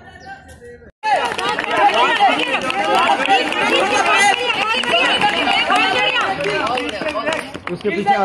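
A group of young people cheer and call out outdoors.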